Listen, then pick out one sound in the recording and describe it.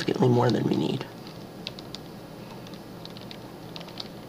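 A wooden door clicks open.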